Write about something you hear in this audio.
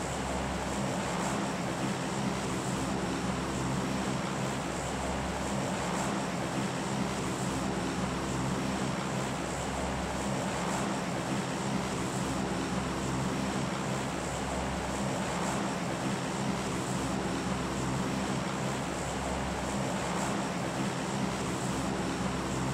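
A propeller plane's engines drone steadily and loudly.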